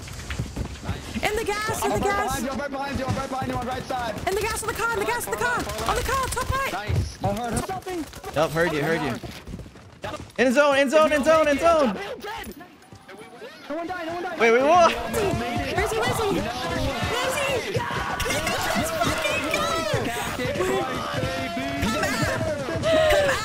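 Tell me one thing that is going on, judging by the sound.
A young woman talks and laughs into a close microphone.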